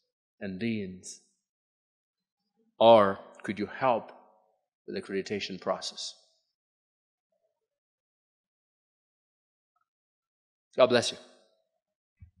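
A young man speaks with emphasis through a microphone.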